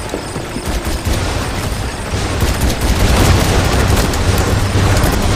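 Rapid laser shots fire again and again.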